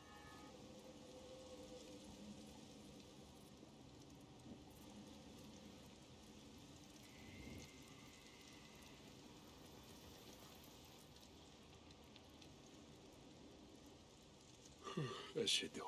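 Wind blows softly outdoors.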